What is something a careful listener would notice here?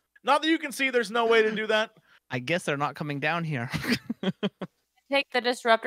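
A man laughs heartily over a microphone.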